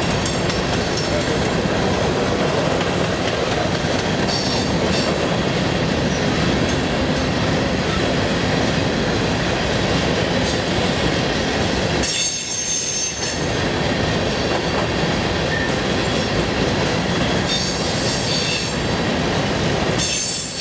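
Steel wheels squeal faintly on the track.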